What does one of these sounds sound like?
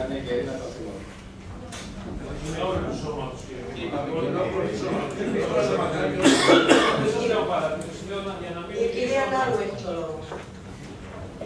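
A man speaks with animation at a distance in a room that echoes.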